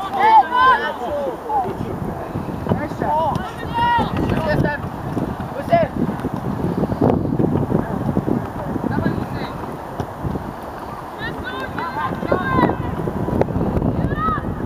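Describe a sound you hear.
Teenage boys shout to each other across an outdoor field.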